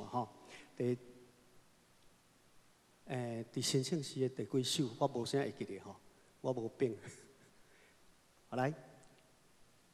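A man speaks into a microphone in a reverberant hall.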